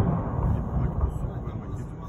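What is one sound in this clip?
Tanks rumble along a road.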